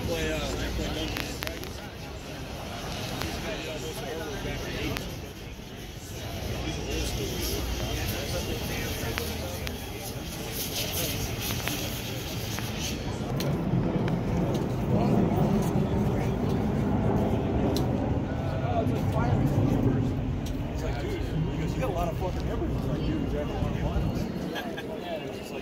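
A crowd murmurs and chatters nearby outdoors.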